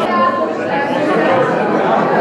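A young woman talks cheerfully.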